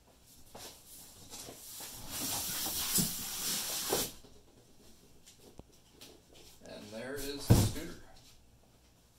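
A cardboard box scrapes and slides as it is pulled open.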